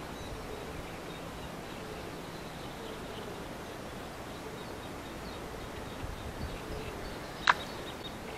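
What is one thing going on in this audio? Water laps gently outdoors.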